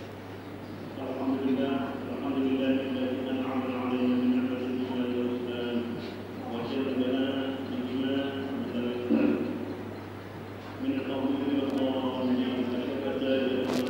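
A man chants in a long, drawn-out voice in a large echoing hall.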